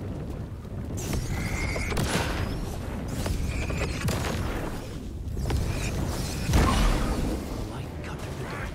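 A flamethrower roars with a rushing blast of flame.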